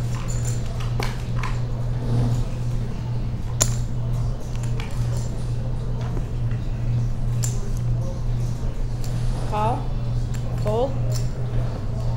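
Poker chips click and clatter on a table.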